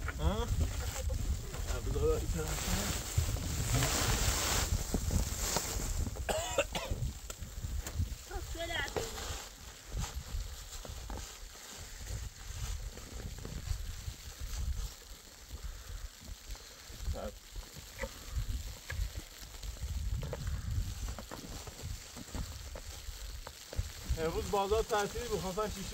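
Wind blows and rumbles steadily outdoors.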